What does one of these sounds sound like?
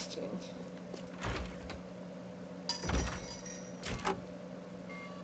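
A heavy door opens with a thud.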